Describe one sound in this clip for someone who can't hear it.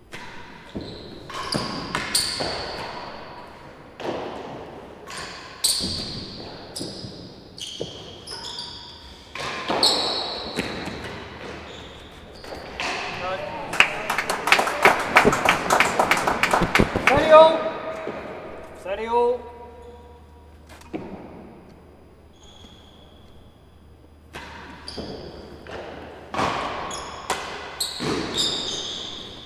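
A racket strikes a ball with sharp cracks that echo around a large hall.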